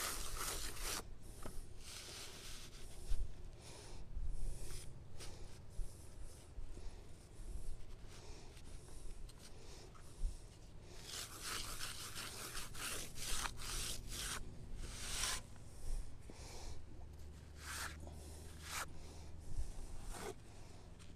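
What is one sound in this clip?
A trowel taps and scrapes on concrete.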